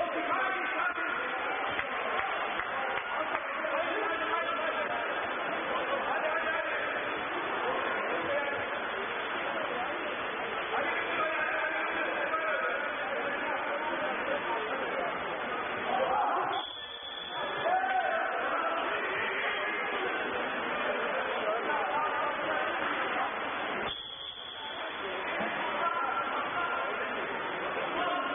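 Water splashes as swimmers thrash in an echoing indoor pool.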